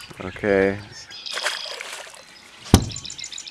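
A fish splashes into the water.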